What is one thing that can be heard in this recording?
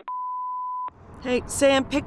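A woman talks into a phone.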